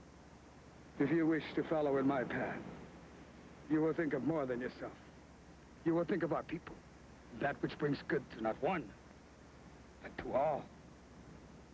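An older man speaks slowly and gravely.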